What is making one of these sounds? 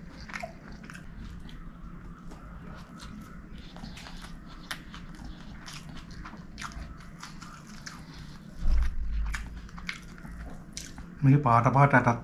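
A man chews food wetly and smacks his lips close to a microphone.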